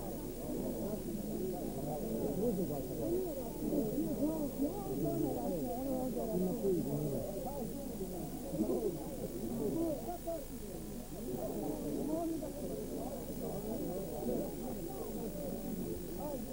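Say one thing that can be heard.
A crowd of men and women chatter and talk over one another close by.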